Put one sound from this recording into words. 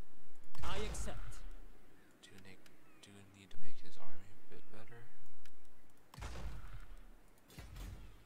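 Soft interface clicks sound.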